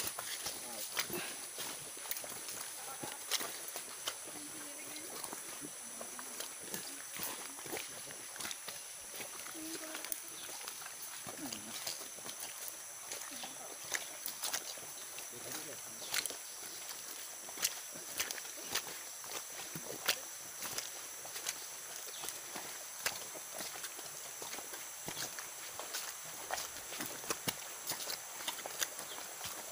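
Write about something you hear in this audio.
Footsteps crunch and rustle on dry leaves and twigs.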